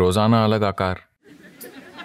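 An elderly man speaks in a deep, calm voice close to a microphone.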